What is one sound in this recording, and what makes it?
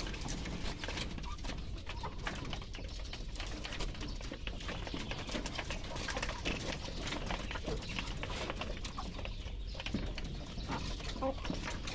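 Hens cluck softly nearby.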